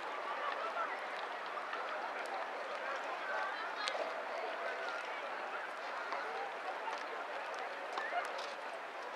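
Small waves ripple and lap on open water.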